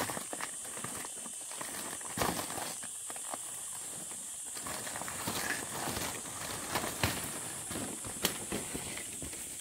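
Dry banana leaves rustle and crackle as a woman shifts among them.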